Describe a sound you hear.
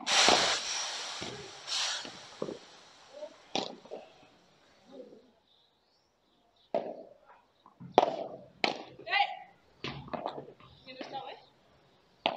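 A padel racket strikes a ball with sharp pops.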